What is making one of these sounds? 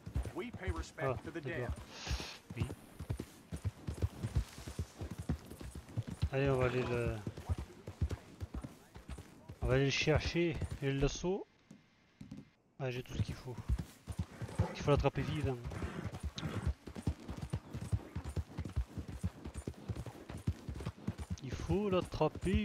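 A horse gallops with quick, steady hoofbeats on soft ground.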